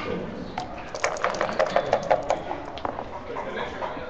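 Dice rattle quickly in a cup.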